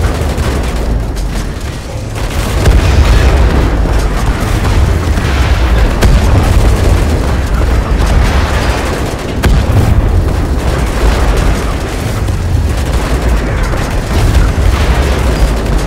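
Guns fire rapid bursts of shots.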